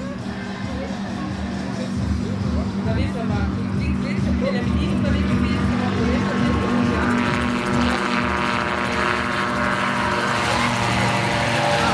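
A small propeller engine drones steadily and grows louder as an aircraft takes off.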